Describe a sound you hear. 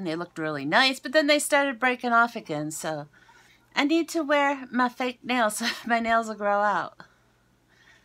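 A woman talks with animation into a nearby microphone.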